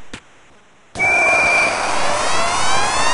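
A goal horn blares loudly.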